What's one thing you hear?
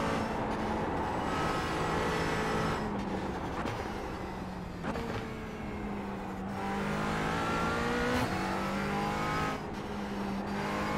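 A race car engine revs high, rising and dropping as gears shift.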